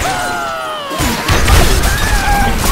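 Wooden blocks and glass crash and shatter in a burst of game noise.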